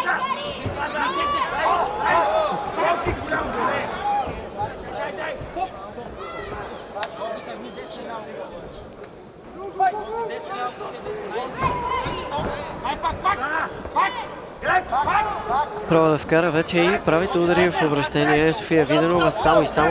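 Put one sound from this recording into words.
Gloved fists and kicks thud against a body.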